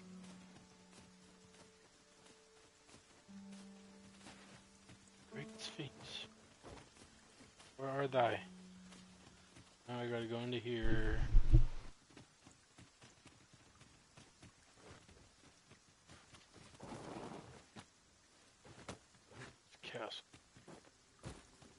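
Footsteps crunch on grass and gravel.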